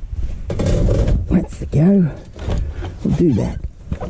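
A washing machine door clicks open.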